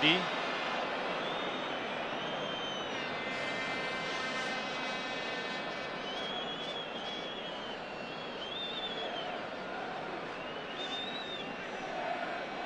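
Spectators in a crowd whistle shrilly on and off.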